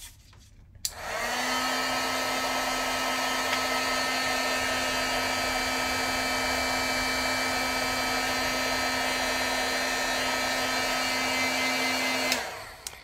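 A heat gun blows with a steady loud whir.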